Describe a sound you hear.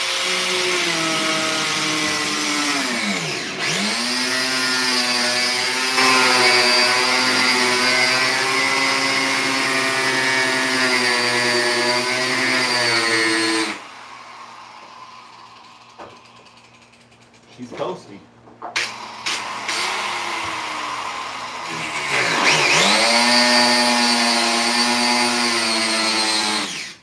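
A handheld power tool whines loudly and steadily, briefly slowing and speeding back up.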